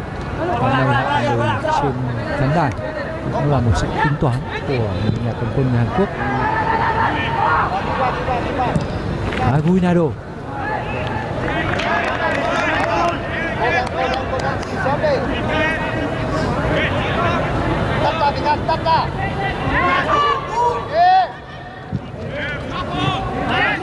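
A crowd chants and sings across a large open stadium.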